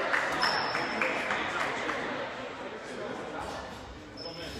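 A crowd cheers and claps loudly in an echoing gym, then quiets down.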